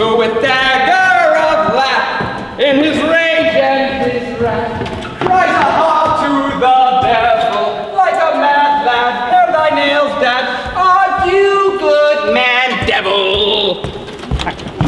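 A man sings loudly and dramatically in a large echoing hall.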